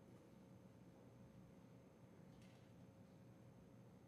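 Metal plates clink faintly.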